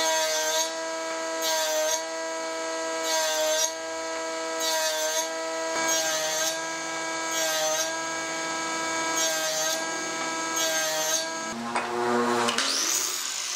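A table saw runs with a steady whine.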